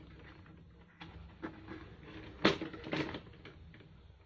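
A plastic toy car clicks and knocks as it is handled.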